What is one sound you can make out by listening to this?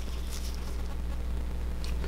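Small scissors snip softly at a leathery eggshell.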